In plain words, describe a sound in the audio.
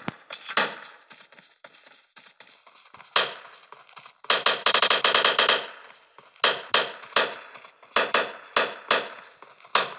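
Footsteps run quickly on hard ground.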